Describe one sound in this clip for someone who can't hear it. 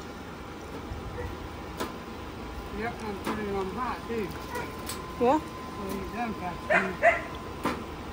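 Foil-wrapped food clatters onto a metal grill grate.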